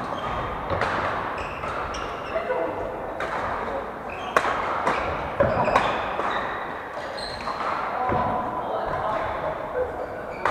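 Shuttlecocks are struck with sharp racket pops in a large echoing hall.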